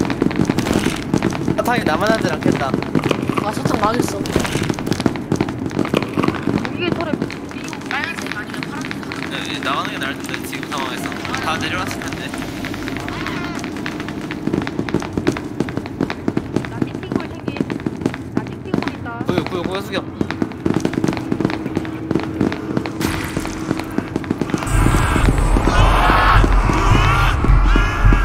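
Footsteps tap on a hard tiled floor.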